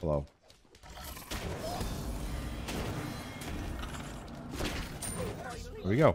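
Game combat effects whoosh and clash.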